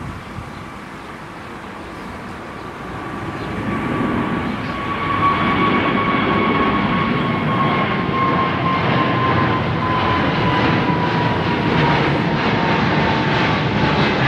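A jet airliner's engines roar loudly overhead, with a high whine that slowly drops in pitch, growing louder.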